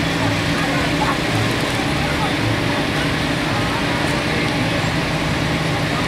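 A truck engine rumbles as it rolls slowly past.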